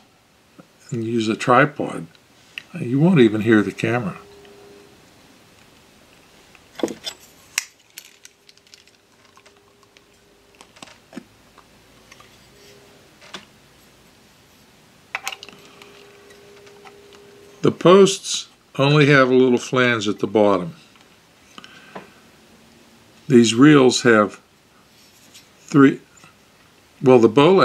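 A man speaks calmly and close by, in short phrases.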